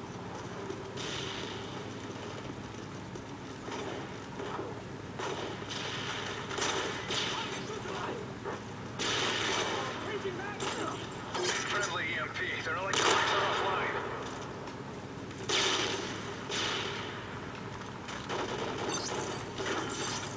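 Gunshots from a video game crack in quick bursts through a loudspeaker.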